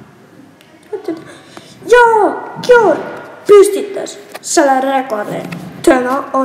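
A young girl speaks with animation.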